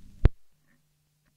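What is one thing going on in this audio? A record drops onto a turntable with a sharp thump.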